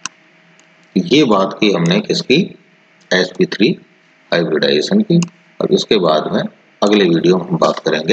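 A middle-aged man speaks calmly and steadily into a close microphone.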